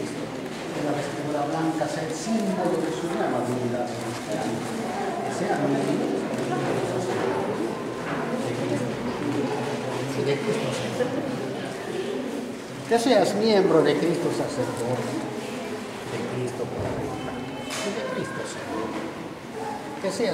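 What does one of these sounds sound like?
An elderly man speaks calmly and steadily, close by.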